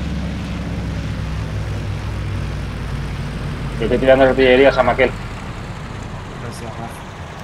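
A propeller plane's engine drones steadily as the plane flies low.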